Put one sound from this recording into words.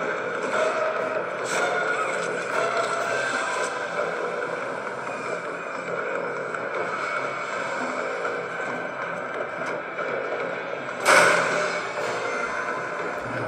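Eerie game music and effects play from a small tablet speaker.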